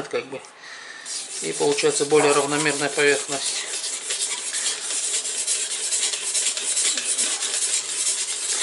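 A sharpening stone scrapes rhythmically along a knife blade.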